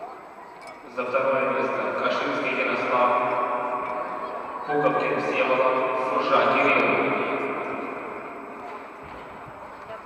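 A man speaks loudly over a loudspeaker in a large echoing hall.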